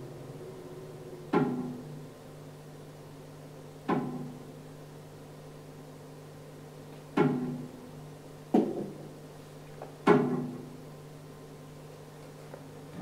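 An accordion holds a low, steady drone.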